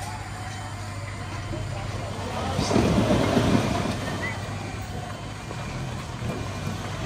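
A truck engine idles and rumbles nearby.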